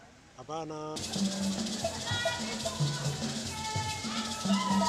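A group of women sing together.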